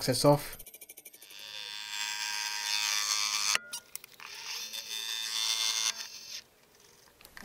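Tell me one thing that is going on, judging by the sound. A small lathe whirs as a cutter shaves metal with a high, rough scraping.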